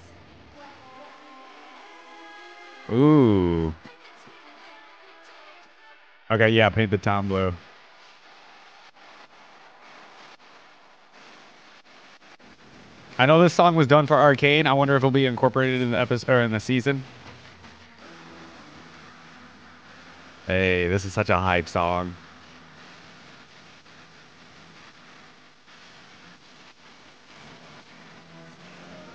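Pop music with singing plays quietly in the background.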